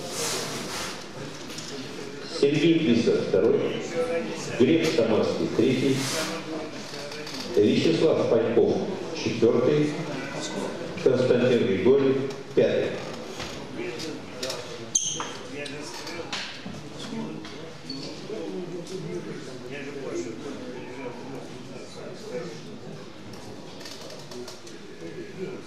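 A crowd murmurs in an echoing hall.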